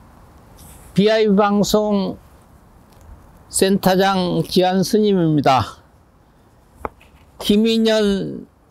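An elderly man reads aloud forcefully, close to a microphone.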